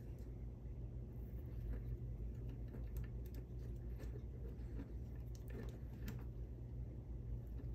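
A small hex driver clicks and ticks against metal parts.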